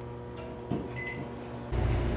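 A microwave beeps.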